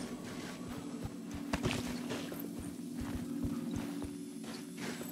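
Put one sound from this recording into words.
Footsteps tread on a hard floor indoors.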